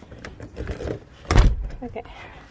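A door opens and shuts with a thud.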